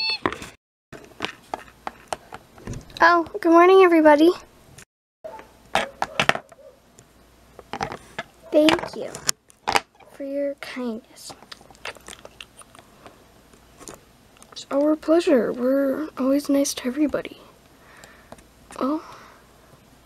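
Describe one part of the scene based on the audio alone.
Plastic toys tap and knock on a hard surface.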